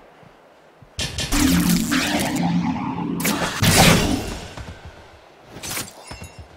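Magic spells burst and crackle loudly.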